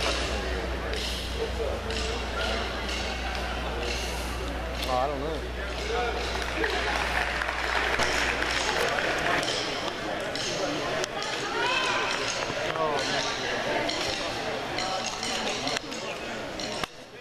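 A crowd chatters and cheers in the stands.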